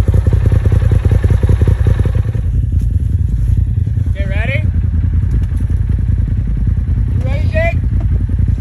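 A powerful off-road vehicle engine idles with a deep, rapid rumble.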